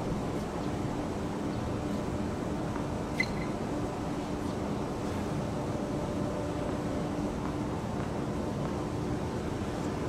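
A tennis ball bounces on a hard court a few times.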